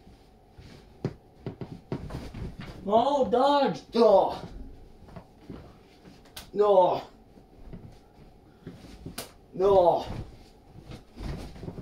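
Dull thumps sound as bodies land on a soft mattress.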